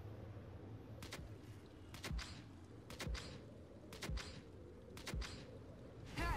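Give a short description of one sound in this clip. A game countdown beeps once each second.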